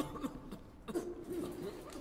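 Footsteps tap on a hard floor in a quiet, echoing room.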